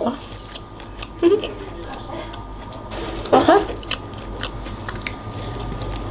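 A young woman blows on hot noodles.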